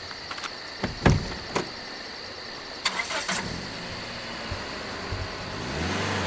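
Drift trikes rattle past on asphalt.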